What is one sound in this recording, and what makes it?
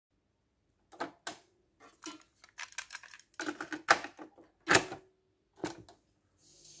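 A cassette player's door clicks open and snaps shut.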